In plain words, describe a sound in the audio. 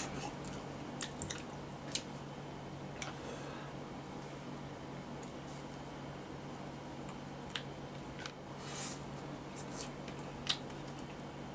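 A man chews and smacks his lips loudly, close up.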